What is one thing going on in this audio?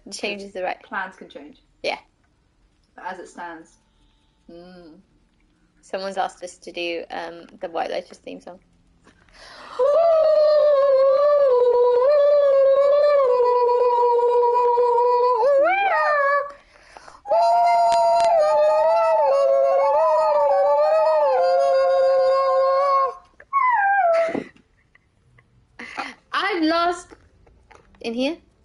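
A young woman talks with animation through a microphone.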